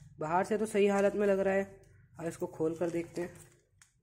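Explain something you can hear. Plastic wrap crinkles as hands handle it.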